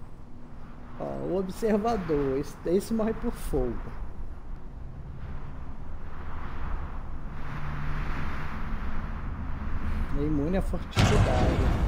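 An elderly man talks with animation close to a microphone.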